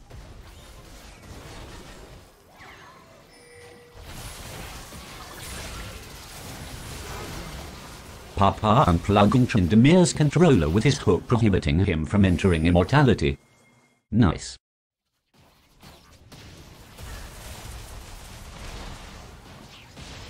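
Game battle effects whoosh and clash.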